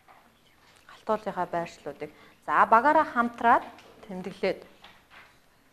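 A woman speaks clearly and with animation to a group.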